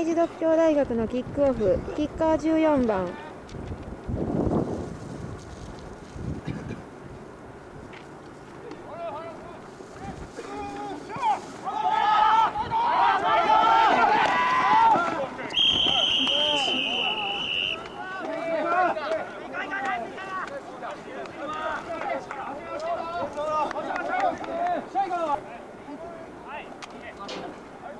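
Young men shout and call out across an open field nearby.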